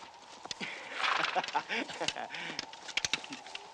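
Horses' hooves clop on hard dirt.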